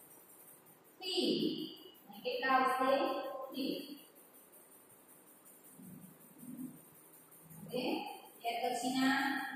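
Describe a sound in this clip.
A young woman speaks clearly, as if teaching.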